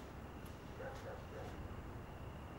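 Footsteps walk across a wooden floor.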